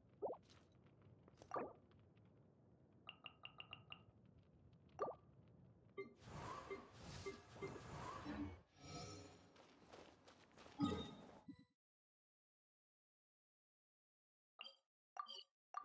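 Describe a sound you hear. Soft game menu chimes click and ping.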